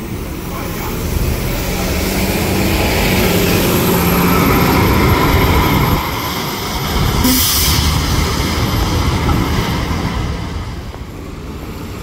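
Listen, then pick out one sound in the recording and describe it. Tyres hiss on a wet road as a bus pulls away.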